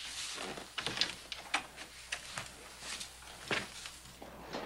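Boots thump on a wooden floor.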